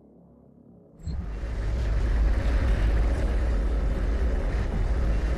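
Loud gunfire and explosions roar in a fast, heavy barrage.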